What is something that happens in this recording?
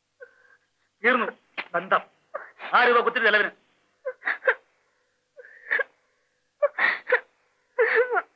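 A man speaks with animation in short bursts.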